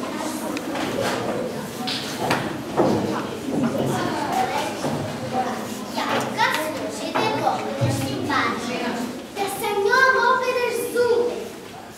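A group of children recite together.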